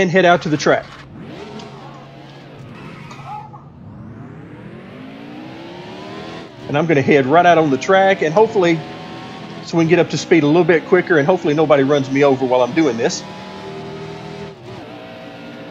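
A race car engine roars and revs up as the car speeds along.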